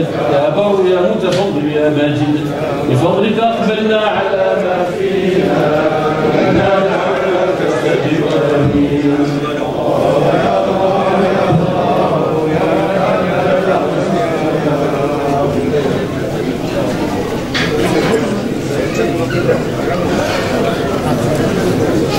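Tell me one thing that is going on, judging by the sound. A middle-aged man chants in a melodic voice through a microphone and loudspeakers.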